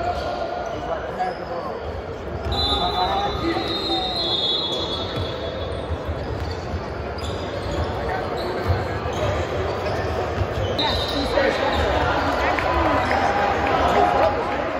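A crowd chatters throughout a large echoing hall.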